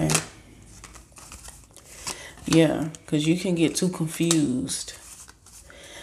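A card is laid down softly.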